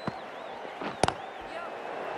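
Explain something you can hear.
A cricket bat cracks against a ball.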